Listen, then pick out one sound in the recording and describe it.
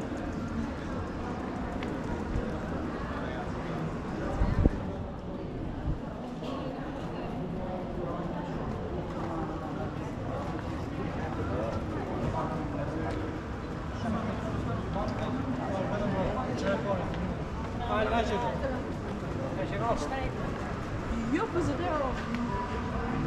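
A crowd of people murmurs and chats nearby outdoors.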